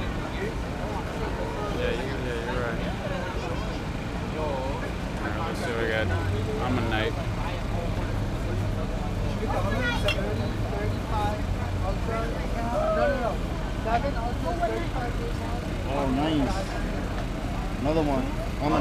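A young man talks calmly, close to a microphone.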